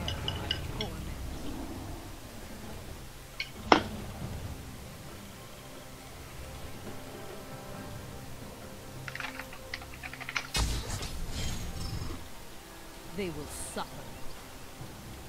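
Electronic game sound effects chime and whoosh in short bursts.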